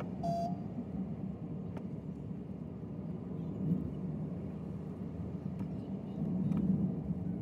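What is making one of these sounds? A car engine hums steadily while driving along a road.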